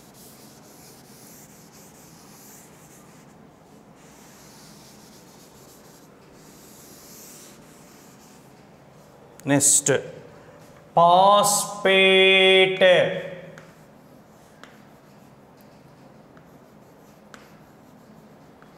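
Chalk taps and scratches faintly on a board.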